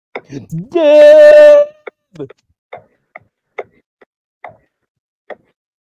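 A man laughs loudly over an online call.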